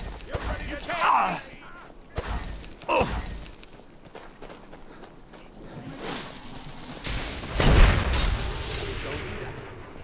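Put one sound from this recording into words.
A man shouts taunts.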